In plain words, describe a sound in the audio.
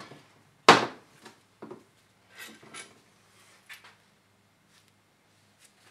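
Metal parts clink against a metal surface.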